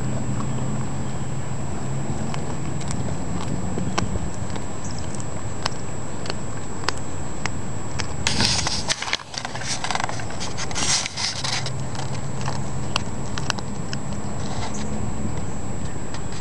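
A cat crunches and chews close by.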